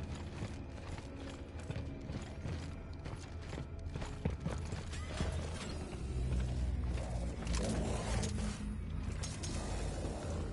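Heavy boots stomp on a metal floor.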